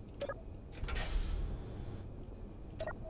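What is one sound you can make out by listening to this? A heavy hatch slides open with a mechanical whoosh.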